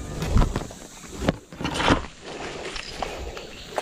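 Dry grass and reeds rustle as they are pushed aside.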